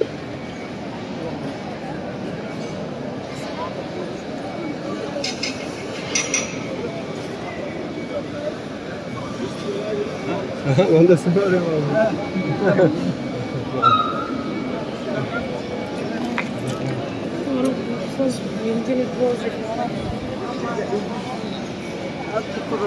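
A large crowd murmurs and shuffles outdoors.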